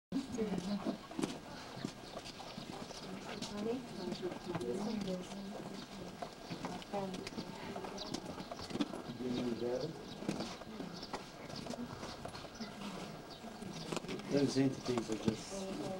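Footsteps shuffle on stone.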